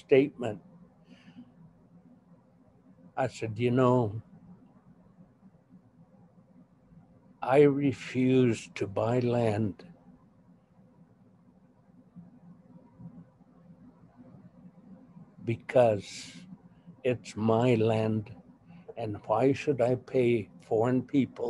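An elderly woman speaks slowly and calmly over an online call, with pauses.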